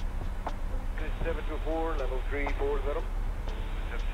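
A man talks calmly into a microphone close by.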